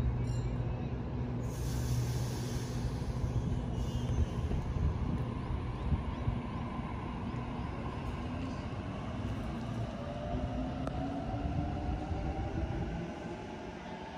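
An electric train hums and whines, rising in pitch as it pulls away.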